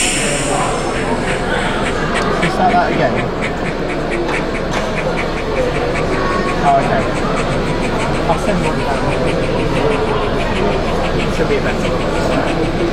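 A model train clicks and rattles steadily along its track.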